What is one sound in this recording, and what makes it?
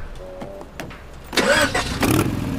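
A key clicks in an ignition.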